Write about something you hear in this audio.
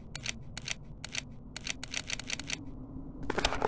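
Sharp mechanical clicks tick in quick succession.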